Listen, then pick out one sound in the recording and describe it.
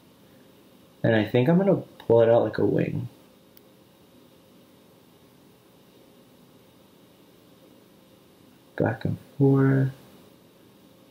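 A young man speaks calmly close to a microphone, in short bursts.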